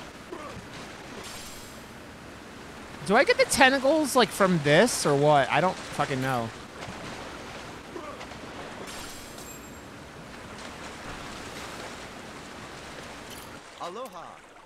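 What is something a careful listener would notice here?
Water splashes as a swimmer paddles through waves.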